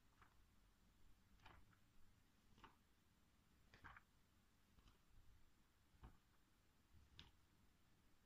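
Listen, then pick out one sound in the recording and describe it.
Book pages rustle and flip as they are turned by hand.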